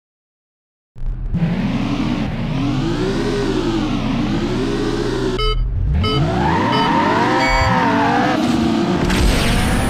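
Racing car engines roar and rev up and down.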